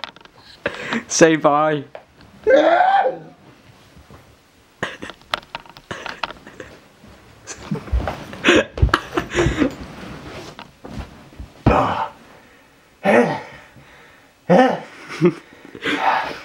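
A body thumps and shuffles against a sofa and floor.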